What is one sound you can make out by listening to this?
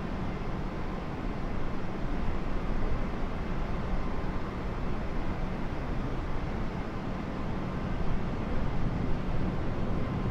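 Jet engines roar steadily.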